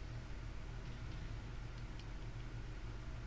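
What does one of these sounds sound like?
A menu selection beeps.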